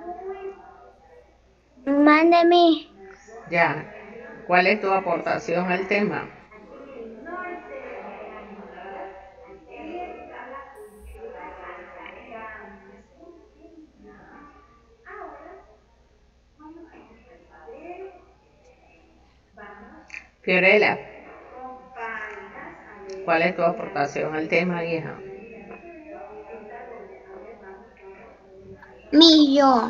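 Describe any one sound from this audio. Children talk with animation over an online call, one after another.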